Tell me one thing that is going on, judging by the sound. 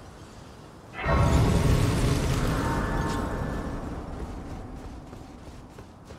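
A bright magical chime swells and slowly fades.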